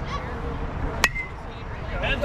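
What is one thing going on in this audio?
A baseball smacks sharply into a catcher's glove.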